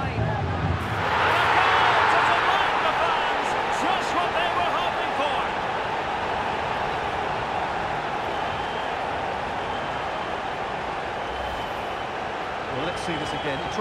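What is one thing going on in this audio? A large crowd roars and cheers loudly in a big stadium.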